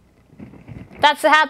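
A woman speaks into a microphone close by.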